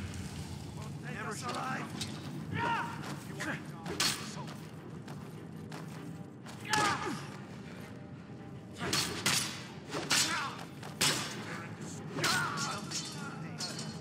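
Steel swords clash and ring in a fight.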